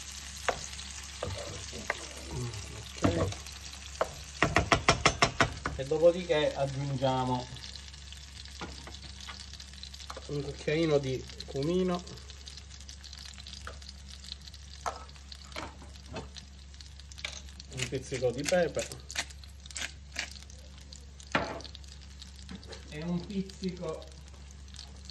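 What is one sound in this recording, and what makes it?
Food sizzles gently in oil in a pan.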